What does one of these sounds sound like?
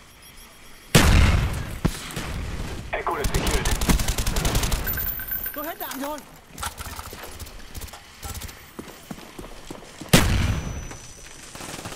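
Rifle gunfire bursts out in loud, sharp volleys.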